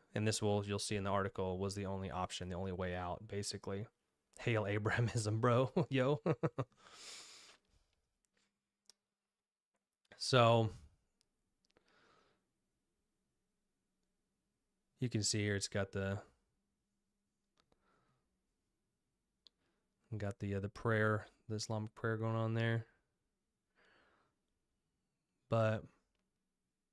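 A young man speaks calmly into a close microphone, in bursts with pauses.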